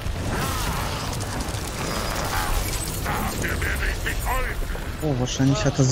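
A man talks with animation through a headset microphone.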